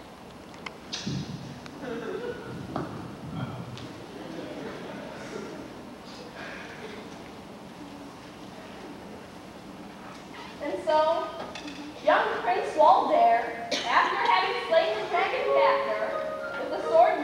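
A young woman speaks on a stage in a large hall.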